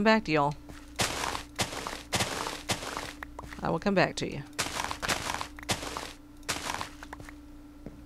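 Video game crops break with short crunching rustles as they are harvested.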